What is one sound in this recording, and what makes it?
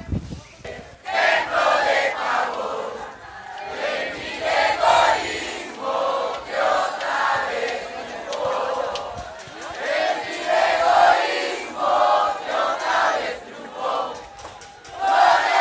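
A large crowd outdoors shouts and chants loudly.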